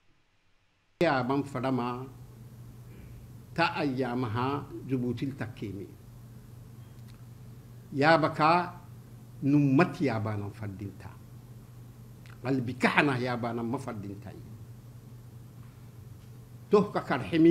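A man speaks in short bursts with pauses.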